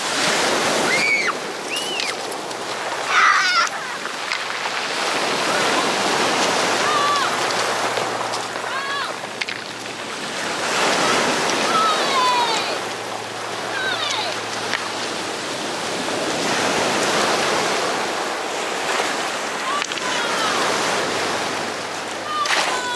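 A toddler squeals and babbles in high little cries nearby.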